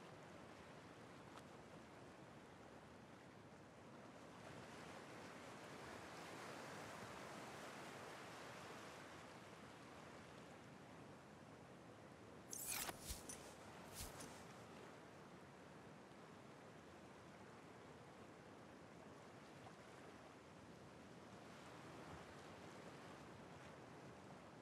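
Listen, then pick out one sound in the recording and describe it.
Ocean waves wash softly against a shore.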